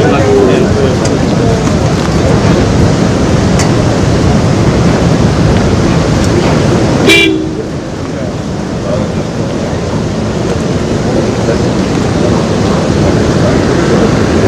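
Floodwater rushes and roars steadily below.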